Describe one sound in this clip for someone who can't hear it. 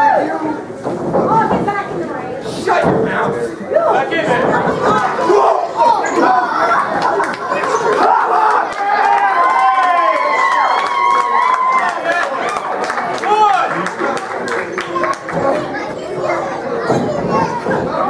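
A crowd of men and women shouts and cheers in an echoing hall.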